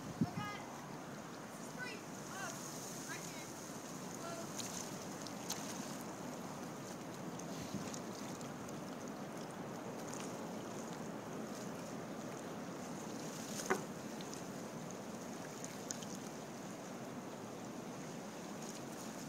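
Water laps gently against a floating dock.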